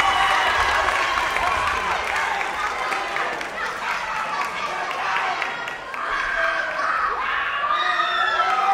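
A crowd of young people cheers and shouts loudly in a large hall.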